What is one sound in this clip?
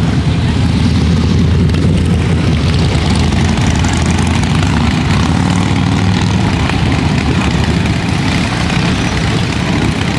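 Motorcycle engines rumble loudly as they ride past close by.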